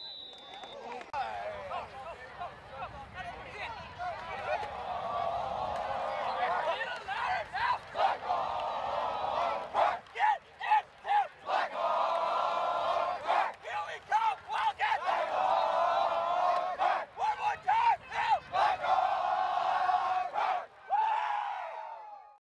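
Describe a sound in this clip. A crowd of young men shout and cheer together outdoors.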